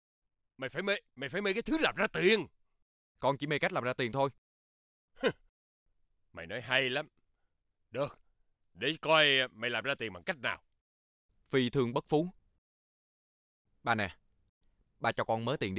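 An elderly man speaks sternly and intently up close.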